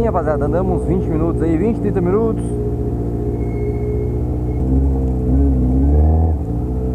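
A motorcycle engine revs up and down, then runs steadily close by.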